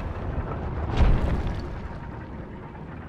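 A magical whoosh bursts and fades away.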